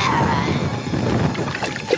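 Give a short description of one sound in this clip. Water splashes loudly as feet stamp through a shallow puddle.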